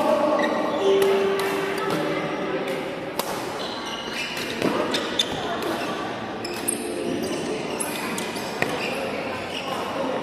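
Many people talk and call out in the background of an echoing hall.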